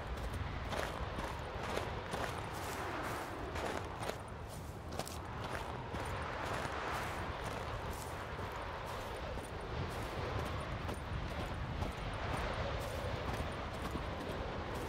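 Footsteps crunch steadily along a dirt path.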